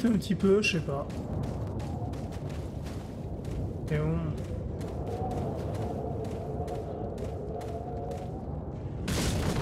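Footsteps crunch steadily over the ground.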